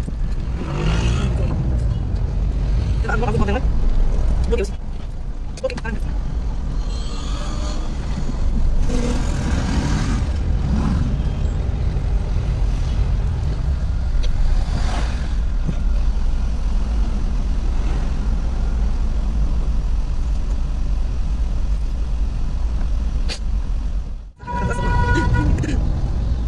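A car engine hums steadily from inside the car in slow traffic.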